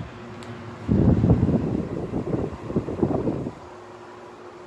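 An air conditioner blows loudly up close with a rushing roar.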